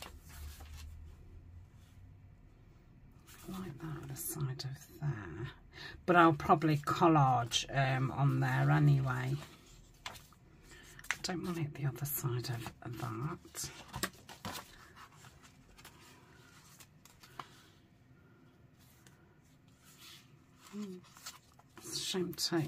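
Paper pages rustle as they are turned and smoothed flat.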